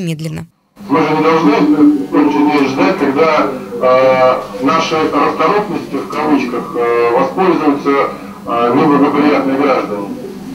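A man speaks calmly through a loudspeaker over an online call.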